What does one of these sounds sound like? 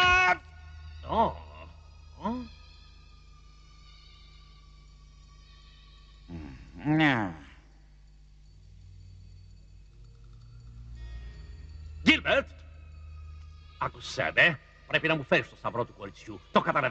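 A man speaks in a low, menacing voice.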